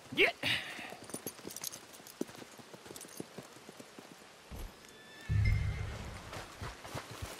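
Horse hooves clop on hard dirt.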